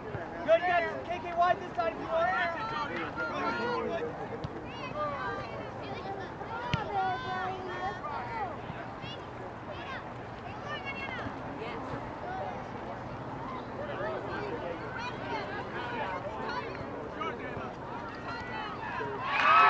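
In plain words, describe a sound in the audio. Young girls and adult spectators shout and call out across an open field.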